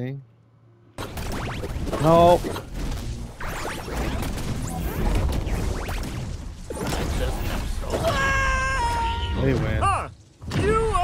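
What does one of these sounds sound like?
Punches and blasts thump and crash in a fast fight.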